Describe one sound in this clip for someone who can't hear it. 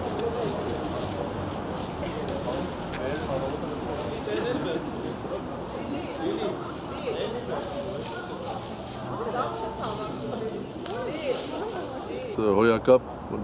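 Rakes scrape over dry grass and leaves.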